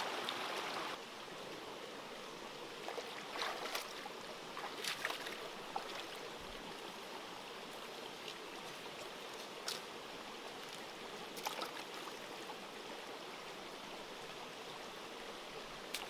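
Water trickles steadily over stones in a stream.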